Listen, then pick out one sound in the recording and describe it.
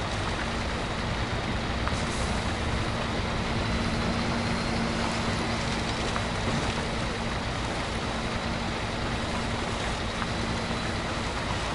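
A truck's tyres churn through mud.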